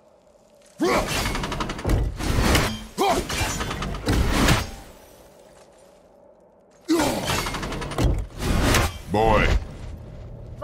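A heavy axe swings through the air and strikes with loud crashing blows.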